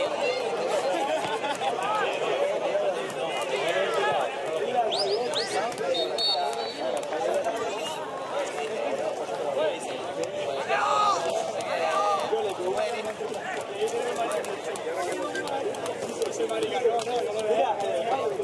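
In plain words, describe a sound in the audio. Young men shout and call to each other across an open outdoor pitch.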